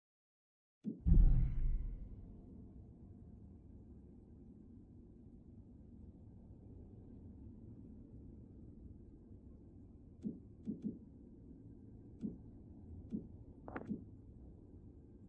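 A low, dark ambient drone hums steadily.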